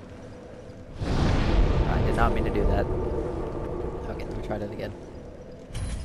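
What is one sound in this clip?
A deep magical whoosh bursts out and slowly fades.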